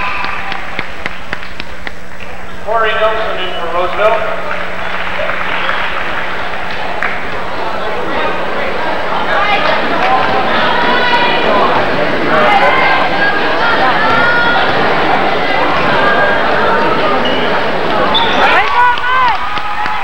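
A crowd in a large echoing gym chatters and cheers.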